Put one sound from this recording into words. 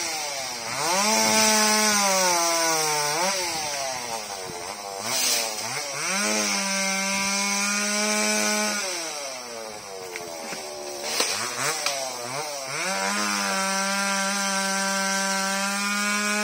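A chainsaw runs high in a tree, its engine rising and falling.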